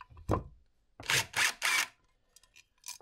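A power driver whirs in short bursts.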